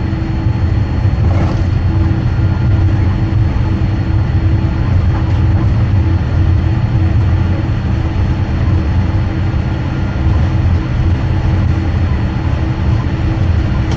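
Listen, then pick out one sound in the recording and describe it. Tyres roll over pavement.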